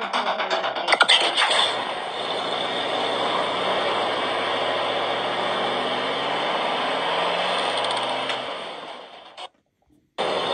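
A game's truck engine rumbles and drives away, heard through a small tablet speaker.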